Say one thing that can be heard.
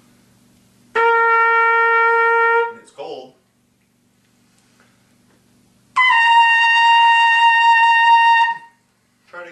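A trumpet plays long, steady held notes.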